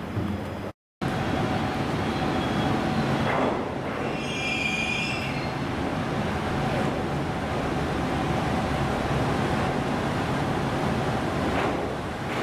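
A diesel train engine rumbles as the train rolls slowly closer.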